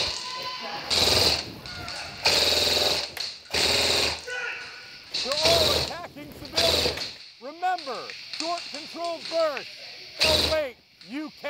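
Toy laser guns fire with bursts of electronic zapping sounds.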